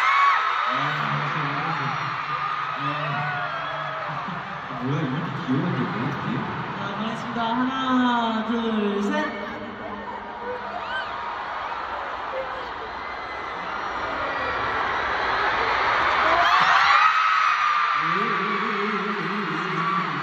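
A large stadium crowd screams and cheers, echoing widely.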